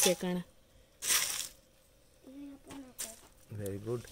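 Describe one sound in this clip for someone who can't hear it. Roasted seeds rattle as a hand stirs them in a metal pot.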